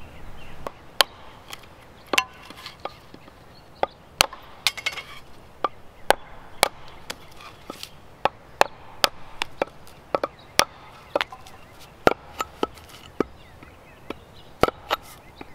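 An axe knocks sharply against wood in repeated taps.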